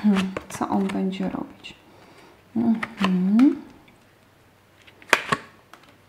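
A card is laid down softly on a cloth.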